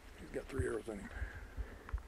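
A moose grunts nearby.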